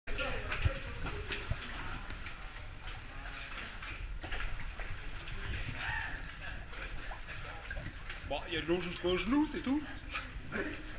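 Water splashes as people wade through it, echoing in a narrow rocky passage.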